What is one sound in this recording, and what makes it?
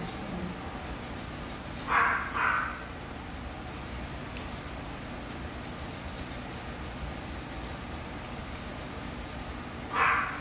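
Scissors snip quickly through hair, close by.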